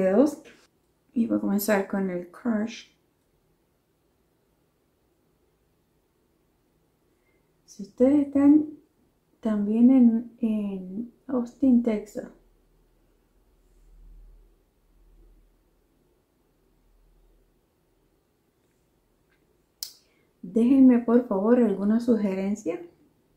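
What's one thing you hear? A woman speaks calmly and close to a microphone.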